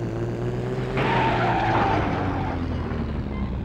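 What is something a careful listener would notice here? A car crashes with a loud crunching smash.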